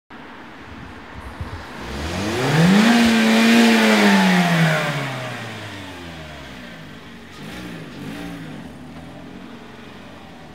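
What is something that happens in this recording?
A car drives past close by, its engine rising and then falling in pitch as it goes away.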